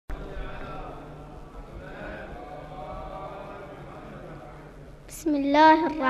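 A man chants a recitation softly through a loudspeaker in an echoing hall.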